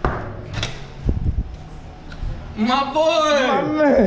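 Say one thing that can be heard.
A door latch clicks and a door swings open.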